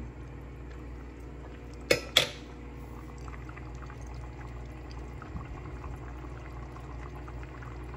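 Liquid simmers and bubbles in a pot.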